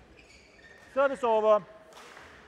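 A man announces over a loudspeaker in a large echoing hall.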